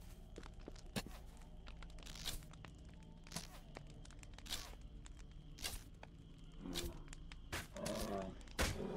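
Weapons strike with sharp clanging hits.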